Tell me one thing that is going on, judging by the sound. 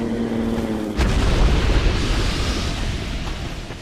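A heavy body crashes down with a deep rumble.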